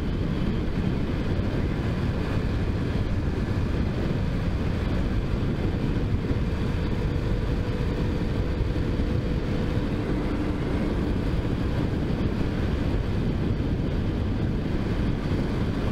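A motorcycle engine hums steadily while cruising.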